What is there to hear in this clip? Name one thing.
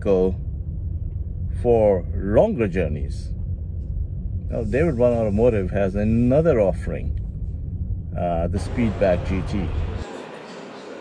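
A man speaks calmly and closely inside a car.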